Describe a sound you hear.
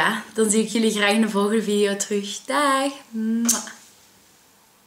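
A young woman talks cheerfully and close up.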